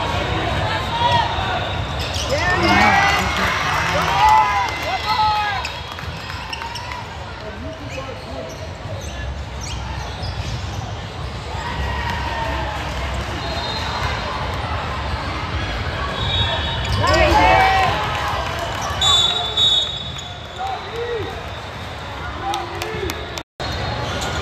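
A crowd chatters and cheers in a large echoing hall.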